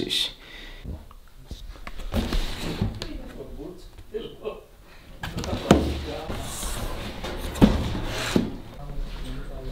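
A cardboard box rubs and knocks as it is handled.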